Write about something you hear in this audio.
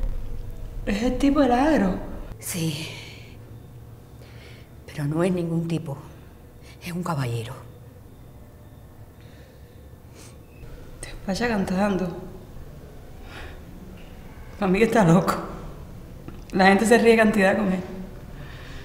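A woman speaks close by in a tearful, upset voice.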